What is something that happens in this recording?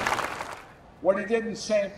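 A man speaks calmly through a microphone and loudspeakers.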